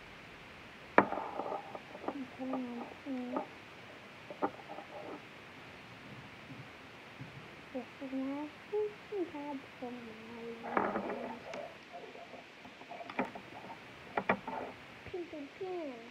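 Plastic taps and clicks against a small bottle.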